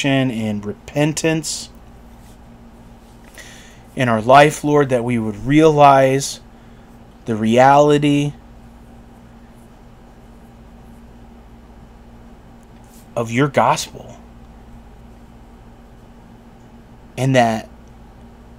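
A middle-aged man speaks calmly and slowly, close to a microphone, with long pauses.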